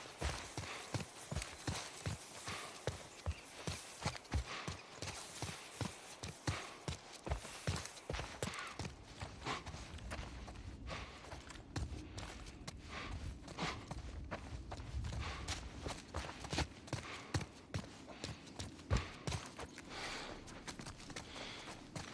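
Footsteps crunch steadily over gravel and hard ground.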